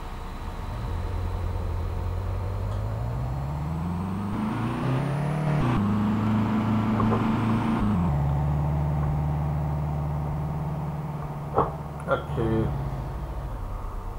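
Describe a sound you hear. A car engine hums and revs up, its pitch rising, then drops back to a steady idle.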